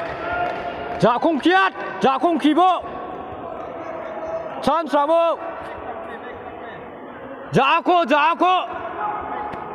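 Young people shout loudly in short bursts from the sidelines.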